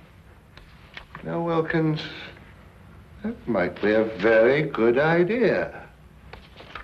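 An older man speaks gruffly in reply.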